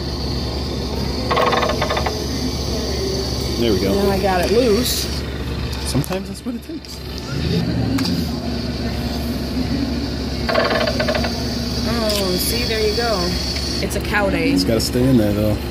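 A claw machine's motor whirs as the claw moves.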